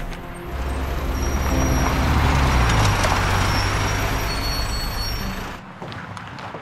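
A bus engine rumbles as the bus pulls up close by.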